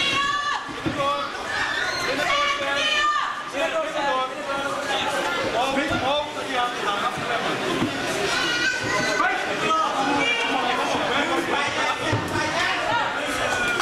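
Kickboxing gloves and shins thud against bodies.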